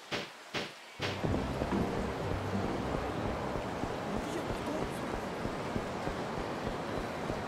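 Footsteps patter on pavement.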